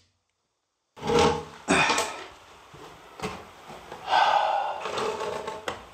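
A wooden board knocks and scrapes against a wall.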